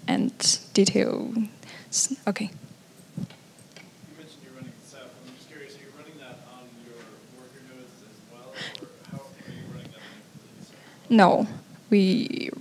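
A young woman speaks calmly through a microphone in a large room.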